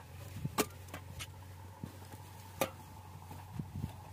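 A shovel scrapes and scoops dry soil.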